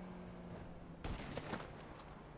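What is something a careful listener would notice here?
A rifle fires a loud shot that echoes.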